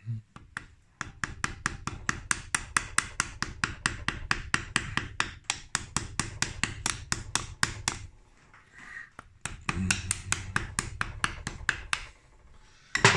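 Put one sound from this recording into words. A ratchet wrench clicks rapidly and steadily.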